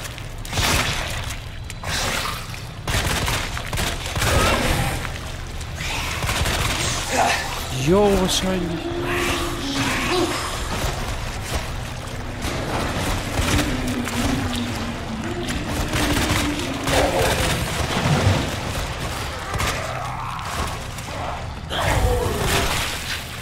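A handgun fires in sharp, echoing shots.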